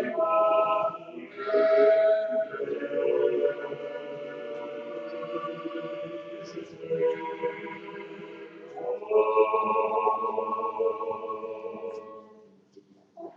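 A small group of voices sings a slow, sustained chant in an echoing hall.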